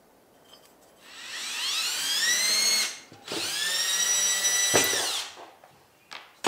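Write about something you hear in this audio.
Motors on a machine whine with rising and falling pitch.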